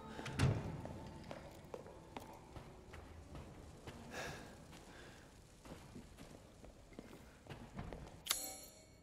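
Footsteps thud on a hard floor in an echoing hall.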